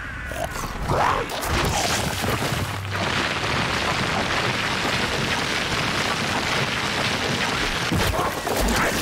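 Loose soil rumbles and hisses as a creature burrows underground.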